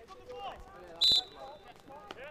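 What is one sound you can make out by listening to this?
An umpire's whistle blows a short sharp blast.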